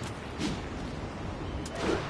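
A web shoots out with a short snap.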